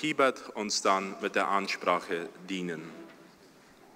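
A young man speaks calmly through a microphone in a large echoing hall.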